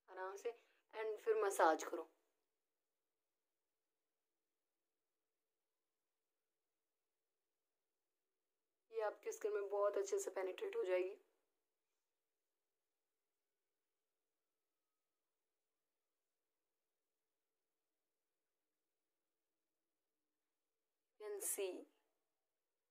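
A young woman speaks calmly and close by, in short bursts with long silences between.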